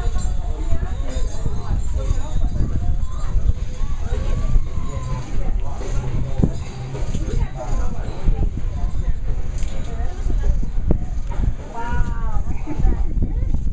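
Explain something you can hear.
Several adults and children talk and chatter nearby, outdoors.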